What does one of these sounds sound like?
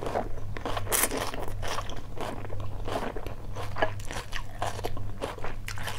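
A woman slurps noodles close to a microphone.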